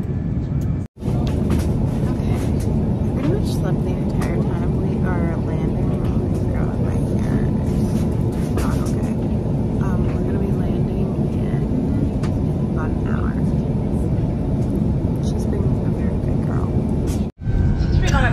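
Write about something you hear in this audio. A young woman talks close by, calmly and with some animation.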